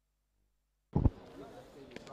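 A cricket bat strikes a ball with a sharp crack.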